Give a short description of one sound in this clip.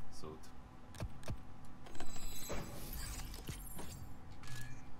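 Game menu sounds click sharply as options are chosen.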